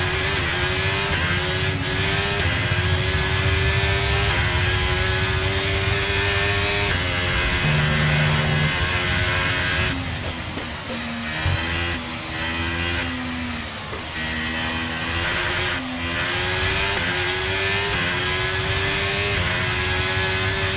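A racing car engine roars at high revs, its pitch climbing and dropping as it shifts gears and slows for corners.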